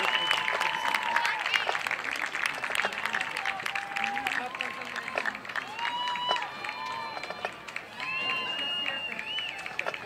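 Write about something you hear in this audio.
A marching band plays brass and woodwind melodies outdoors.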